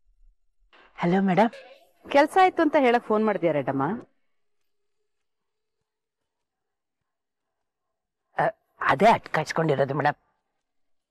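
An elderly woman speaks with animation into a phone.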